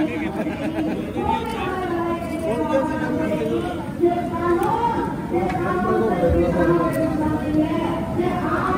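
A metal ladle clinks against the side of a metal pot.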